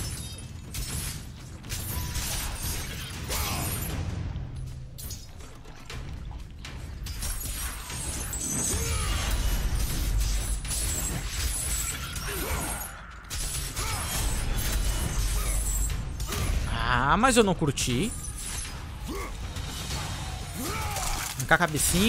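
Blades clash and strike in a fight, with thuds and clangs.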